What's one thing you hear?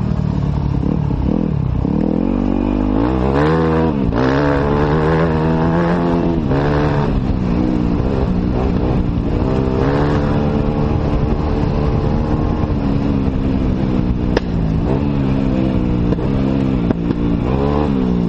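Tyres crunch over loose gravel and stones.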